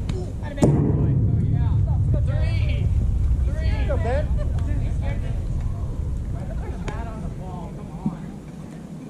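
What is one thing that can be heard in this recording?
Young men shout and cheer across an open field.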